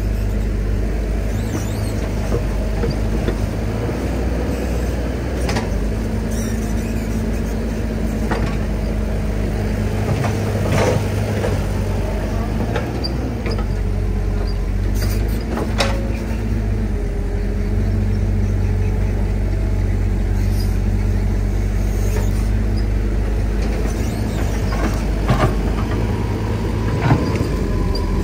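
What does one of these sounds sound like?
An excavator bucket scrapes and knocks against mud and debris.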